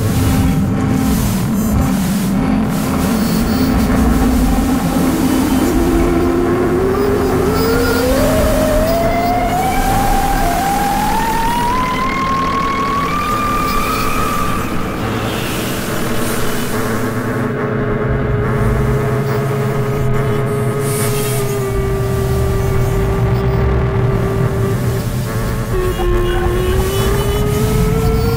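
A low electronic rumble pulses throughout.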